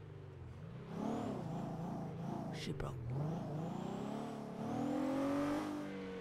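A car engine hums and revs as the car drives along.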